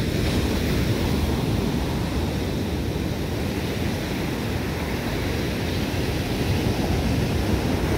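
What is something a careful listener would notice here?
Ocean waves crash and wash up onto the shore.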